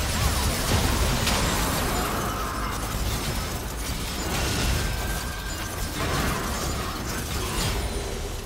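Game characters' attacks thud and clash.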